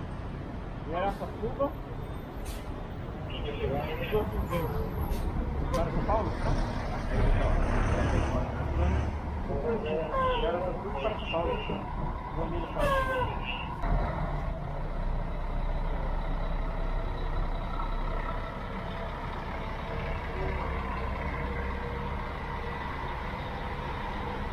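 A large bus engine rumbles as the bus pulls in slowly.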